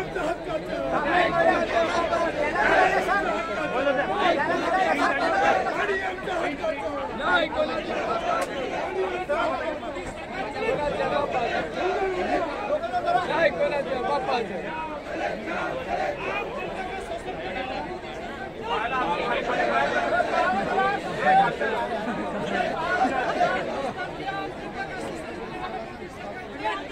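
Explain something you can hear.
Men nearby call out to each other excitedly.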